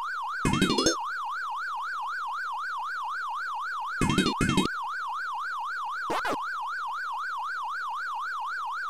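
An arcade game's warbling siren tone wavers up and down steadily.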